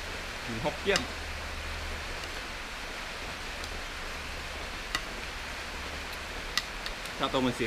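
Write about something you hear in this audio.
A metal fork clinks against a plate.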